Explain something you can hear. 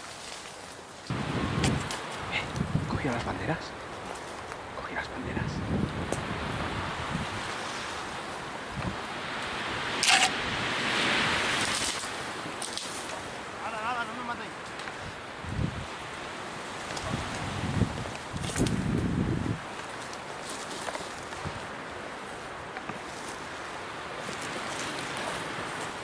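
Branches and leaves rustle and scrape as someone pushes through bushes.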